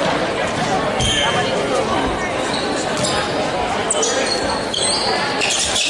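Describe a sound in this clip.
Sneakers squeak on a wooden court.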